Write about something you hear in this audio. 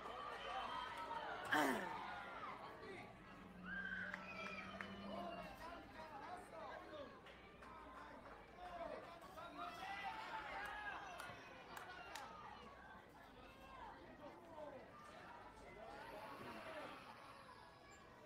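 Young players shout and chatter outdoors at a distance.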